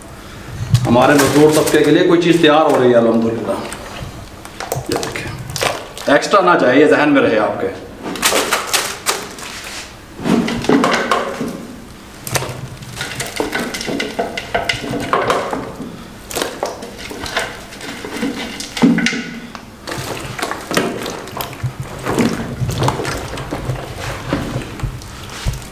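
Wet food squelches as hands squeeze and mix it.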